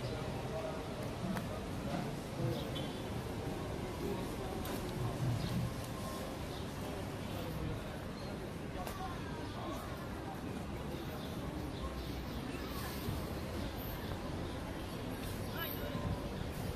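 People chatter and murmur in the distance outdoors.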